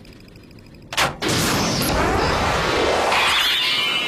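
An explosion bursts with a loud whoosh.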